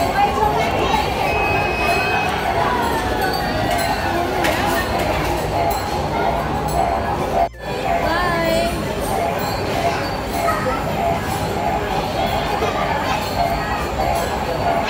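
Arcade machines chime and play electronic music throughout a noisy, echoing hall.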